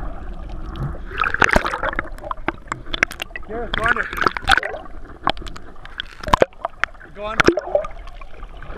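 Water splashes and sloshes at the surface.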